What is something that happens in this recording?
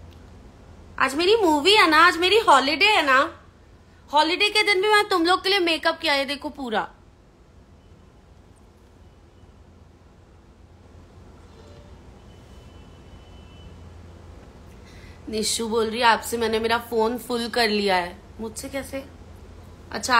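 A young woman speaks close to the microphone with animation.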